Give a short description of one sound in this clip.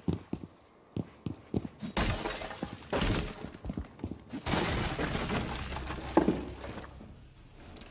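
Footsteps tap quickly on a hard floor.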